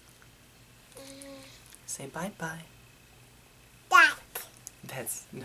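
A toddler squeals and babbles happily.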